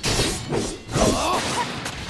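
A magic blast bursts with a bright crackling boom.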